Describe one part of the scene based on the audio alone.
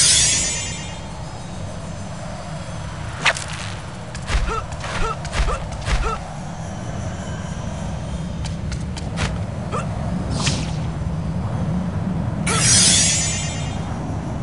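Air whooshes loudly as a figure swings and falls.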